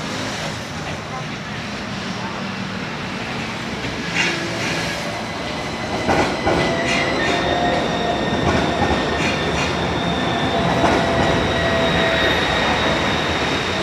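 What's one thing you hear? An electric tram passes close by.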